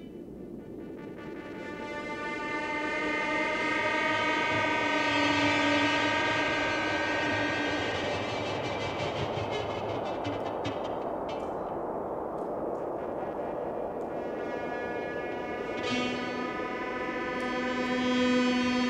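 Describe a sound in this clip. A drum kit beats along with the band.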